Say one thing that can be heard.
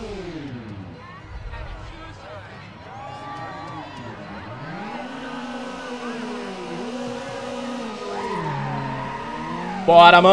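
Car engines idle and rev loudly, rising and falling in pitch.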